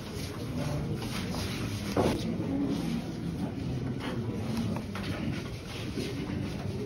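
A crowd of men murmurs and talks at once in an echoing room.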